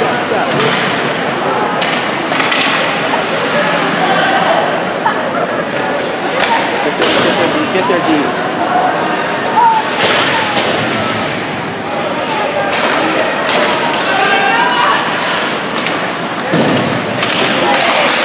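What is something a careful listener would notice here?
A crowd of spectators chatters and cheers in a large echoing rink.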